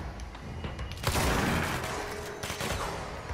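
An explosion booms with crackling debris.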